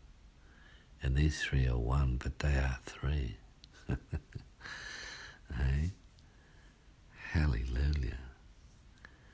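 A man speaks close by, in short bursts with pauses.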